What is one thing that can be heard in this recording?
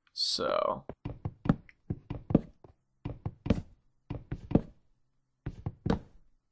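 An axe chops at wood with quick, repeated knocks.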